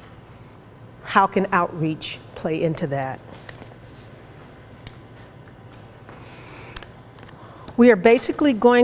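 A woman speaks calmly into a microphone.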